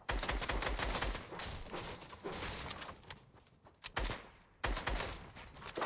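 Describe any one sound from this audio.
Wooden walls are rapidly built with sharp clacks.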